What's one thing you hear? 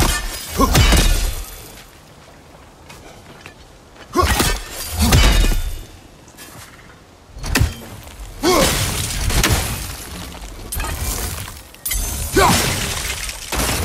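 A man grunts loudly, close by.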